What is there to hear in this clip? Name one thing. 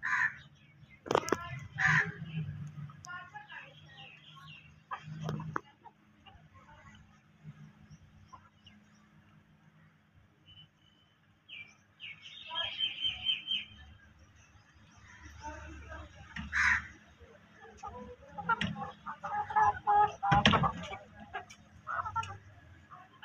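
Chickens cluck softly close by.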